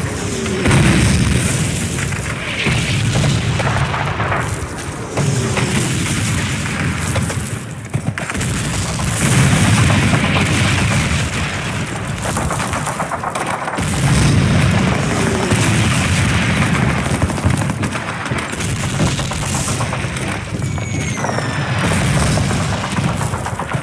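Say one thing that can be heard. Footsteps crunch over grass and dirt.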